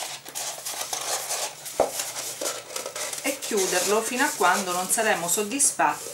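Stiff paper rustles and crinkles as hands roll and press it.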